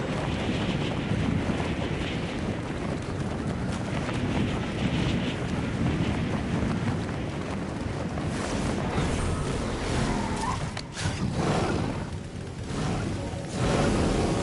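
Wind rushes loudly past a figure diving through the air.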